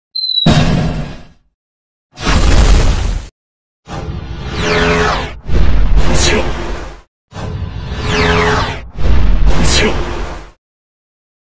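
Magical blasts whoosh and boom.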